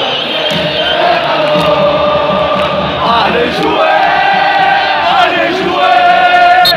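A huge crowd chants and sings loudly in unison in an open stadium.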